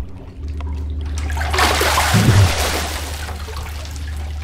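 Ice cubes clatter and shift in a tub.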